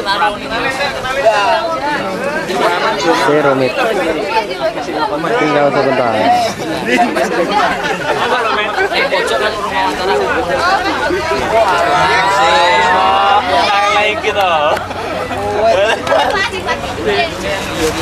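Young women sing together loudly close by, outdoors.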